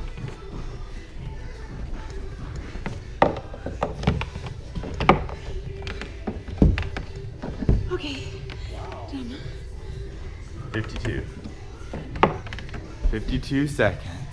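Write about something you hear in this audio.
Wooden pegs knock against a climbing board.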